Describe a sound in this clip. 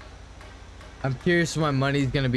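A young man talks loudly with animation into a close microphone.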